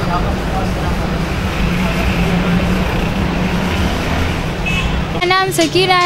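Street traffic rumbles steadily in the background.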